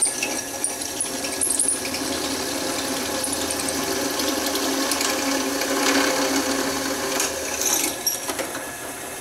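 A drill press motor whirs steadily.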